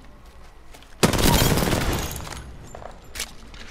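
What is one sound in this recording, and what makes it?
Gunfire bursts from a rifle.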